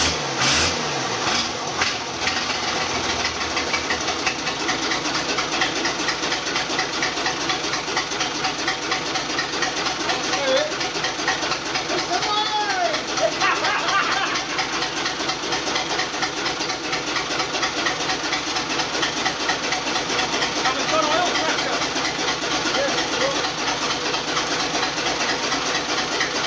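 A straight-six diesel engine idles.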